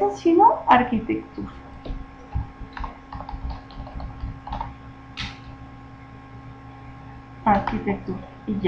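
A woman speaks calmly and close into a microphone.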